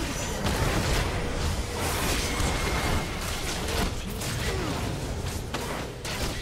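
Game sound effects of magic blasts and hits crackle rapidly.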